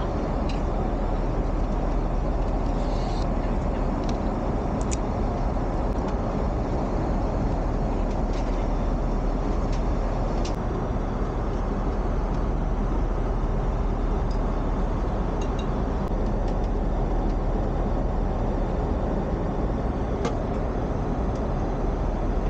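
A steady low roar of an airplane cabin fills the air.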